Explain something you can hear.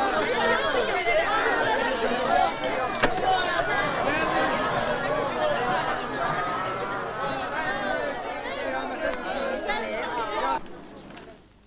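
A large crowd chatters and murmurs loudly outdoors.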